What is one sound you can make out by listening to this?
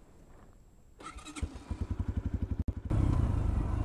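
A motorcycle engine starts and idles with a rapid throb.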